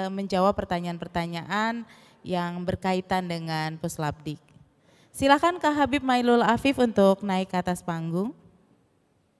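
A woman speaks with animation into a microphone, heard through loudspeakers.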